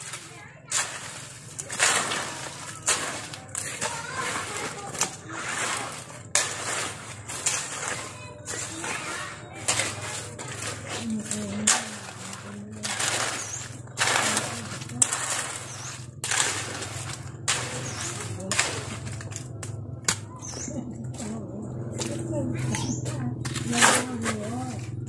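A shovel scrapes and scoops through wet sand and cement, again and again.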